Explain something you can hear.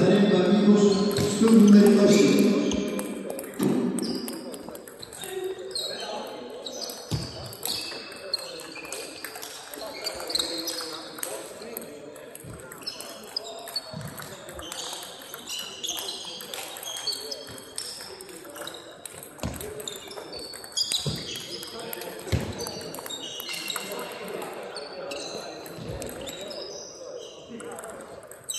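Table tennis balls click sharply off paddles and the table in a large echoing hall.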